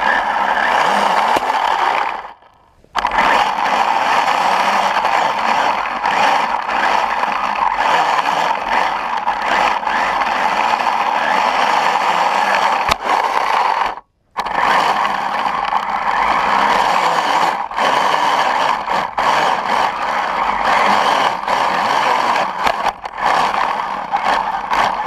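Snow hisses and crunches under a small snowmobile.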